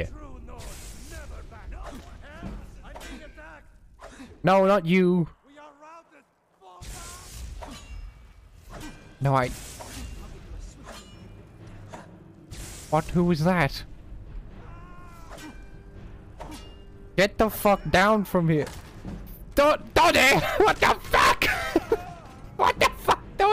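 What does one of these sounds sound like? Swords clang and strike in a fight.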